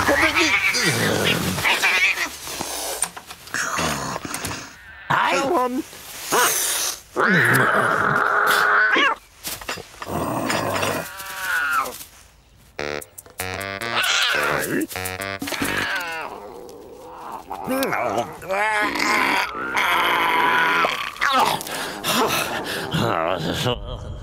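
A man grunts and mumbles in a comical voice.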